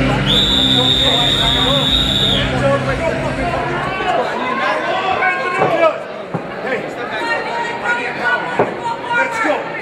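A crowd chatters and shouts in a large echoing hall.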